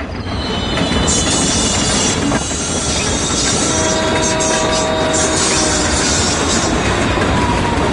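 A train rumbles loudly as it approaches.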